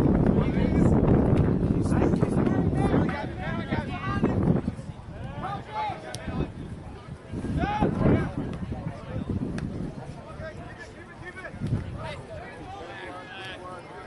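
A soccer ball is kicked with a thump.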